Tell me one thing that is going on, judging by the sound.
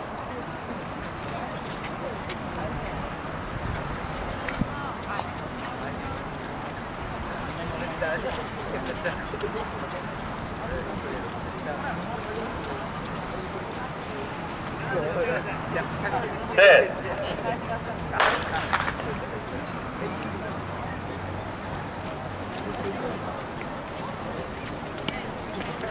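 A crowd of spectators murmurs softly outdoors.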